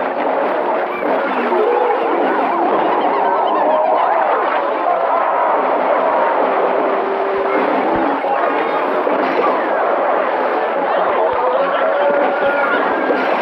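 Rapid cartoon zapping and popping effects play without pause.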